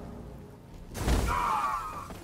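A heavy body lands with a loud thud.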